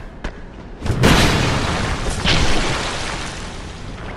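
Metal clangs as a blade strikes a shield.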